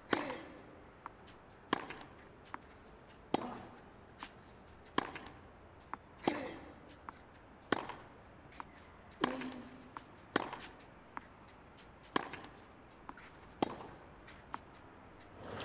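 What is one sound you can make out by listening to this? Tennis balls bounce on a clay court.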